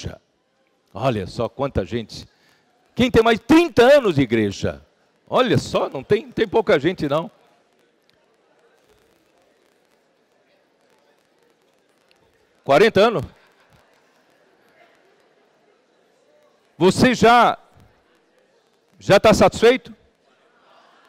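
A man speaks animatedly into a microphone, in short bursts with pauses.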